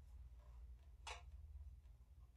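A metal cup clinks against a metal dish.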